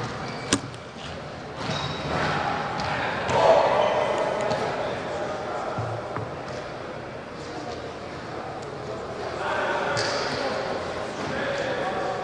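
Young men chatter and call out in a large echoing hall.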